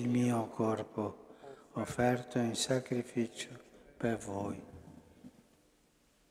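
An elderly man chants prayers slowly into a microphone in a large echoing hall.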